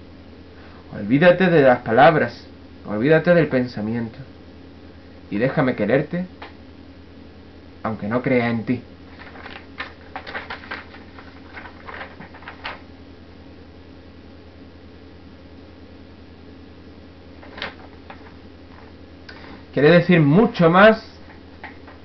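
A young man speaks close to a microphone in short bursts, with pauses between.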